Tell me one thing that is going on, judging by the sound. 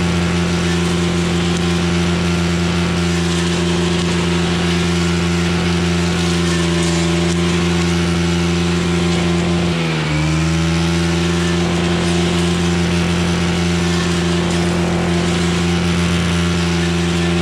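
A petrol string trimmer engine drones loudly and steadily, briefly dipping in pitch.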